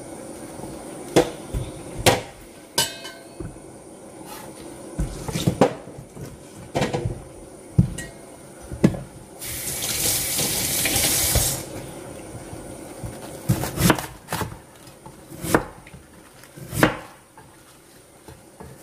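Cabbage leaves crunch and crackle as a knife cuts them.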